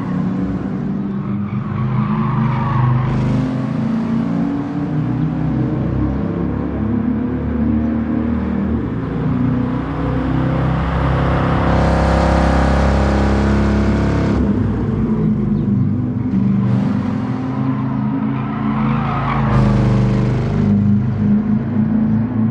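A powerful car engine roars, rising and falling in pitch as the car speeds along.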